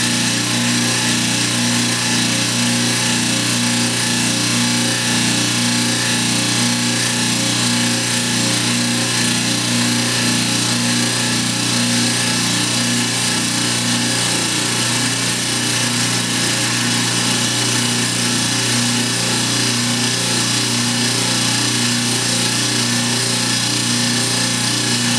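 A scroll saw buzzes steadily as its blade cuts through wood.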